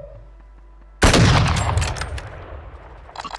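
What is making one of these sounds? A rifle fires a loud shot that echoes away.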